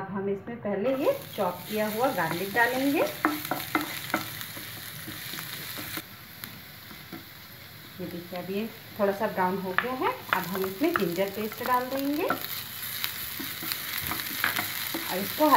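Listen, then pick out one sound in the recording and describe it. Garlic sizzles in hot oil in a frying pan.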